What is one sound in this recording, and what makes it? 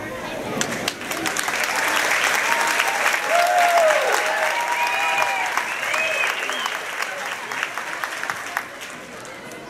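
A crowd applauds with steady clapping.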